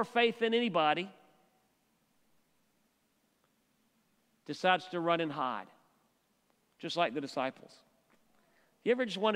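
A middle-aged man speaks calmly through a microphone in a large room, pausing between phrases.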